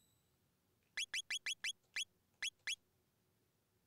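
Short electronic beeps sound quickly one after another.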